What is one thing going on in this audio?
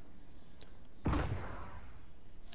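A bolt-action sniper rifle fires a single shot.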